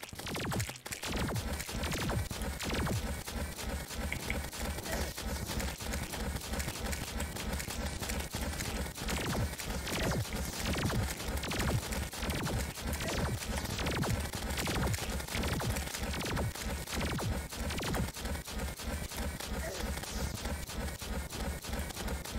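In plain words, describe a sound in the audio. Rapid game weapon shots fire in a steady stream.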